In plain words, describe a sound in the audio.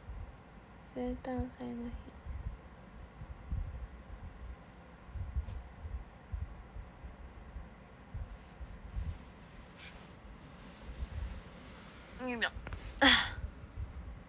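A young woman speaks softly and close by.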